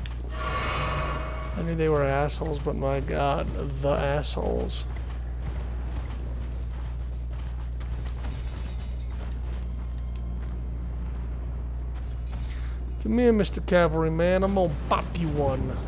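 Hooves gallop over snowy ground.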